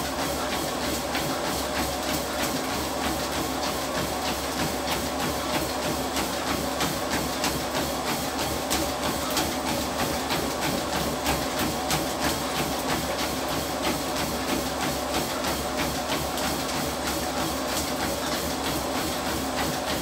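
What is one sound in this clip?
Feet pound rhythmically on a treadmill belt.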